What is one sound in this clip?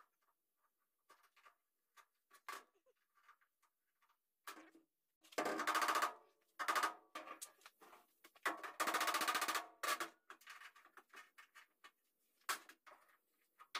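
Metal tools clink and rattle on a bench.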